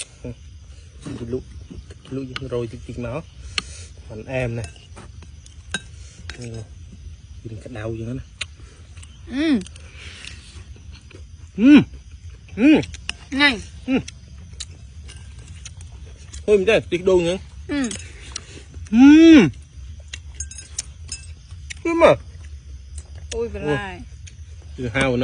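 A young man makes loud, drawn-out sounds of enjoyment while eating, close by.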